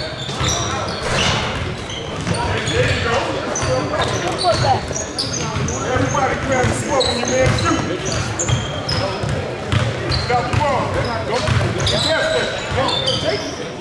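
Players and spectators call out and chatter in the echoing hall.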